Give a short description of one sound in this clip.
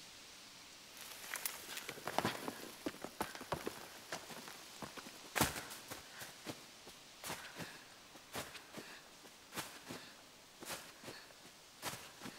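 Light footsteps run quickly over leaves and twigs.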